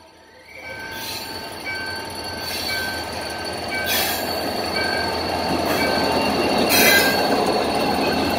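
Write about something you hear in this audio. Train wheels clack over rail joints at a steady pace.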